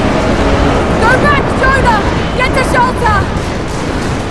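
A young woman shouts urgently.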